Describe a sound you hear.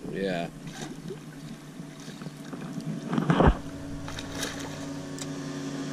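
A fish splashes in the water beside a boat.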